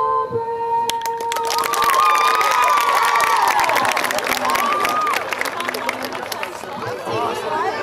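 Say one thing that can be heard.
A crowd in the stands cheers and applauds outdoors.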